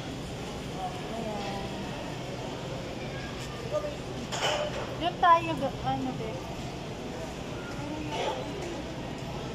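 A woman talks close by.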